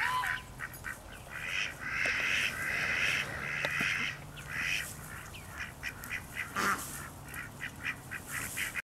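Ducks quack and chatter close by.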